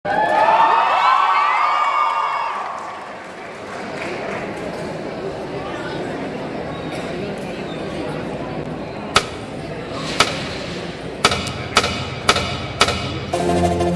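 Music with a heavy beat plays loudly through loudspeakers in a large hall.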